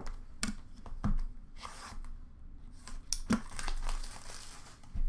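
Cardboard card packs tap and rustle as a hand handles them.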